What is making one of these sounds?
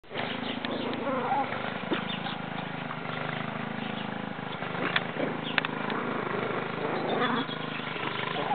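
Small puppies yip and whine softly while playing.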